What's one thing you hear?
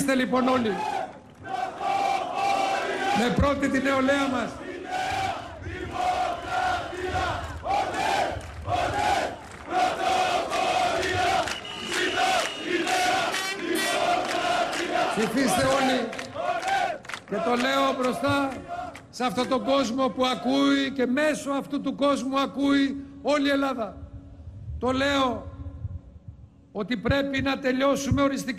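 A large crowd cheers and shouts.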